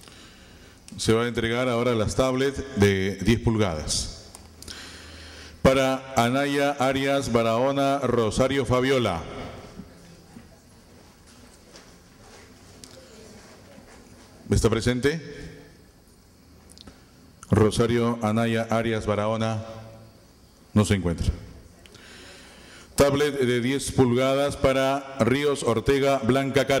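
A man speaks calmly through a loudspeaker in an echoing hall.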